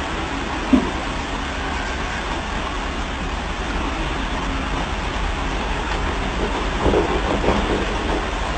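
A heavy truck engine rumbles steadily nearby.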